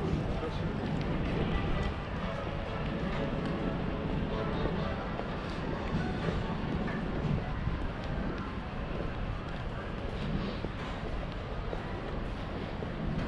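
Footsteps tap steadily on paving outdoors.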